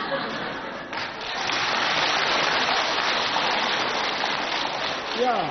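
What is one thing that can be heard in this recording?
A crowd claps and applauds.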